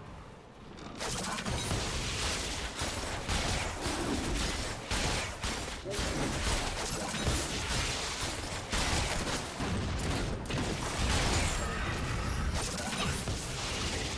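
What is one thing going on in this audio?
Game sound effects of spells and attacks clash in quick bursts.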